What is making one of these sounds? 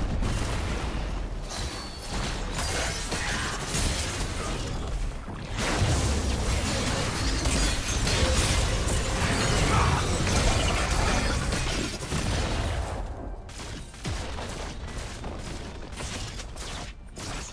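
Spell effects whoosh and blast in a game fight.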